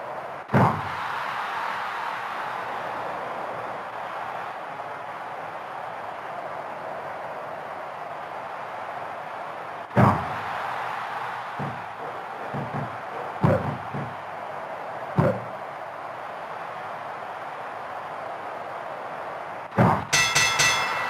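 Heavy thuds of bodies slamming onto a wrestling ring's mat.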